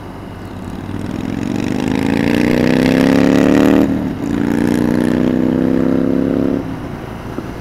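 A motorcycle engine revs up through the gears and then settles.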